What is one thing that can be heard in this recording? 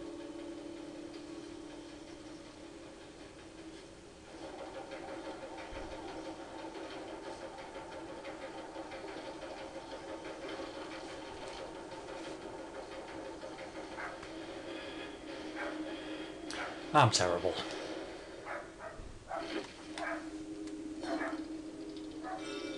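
Eerie video game music drones steadily.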